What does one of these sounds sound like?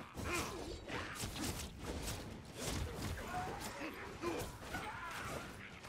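Blades slash and strike in quick, repeated hits.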